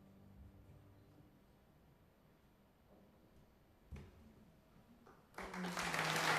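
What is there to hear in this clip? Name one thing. A violin plays a quiet, fading final note.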